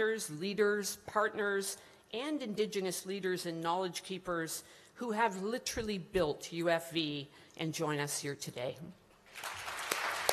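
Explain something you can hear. An older woman speaks calmly into a microphone over a loudspeaker.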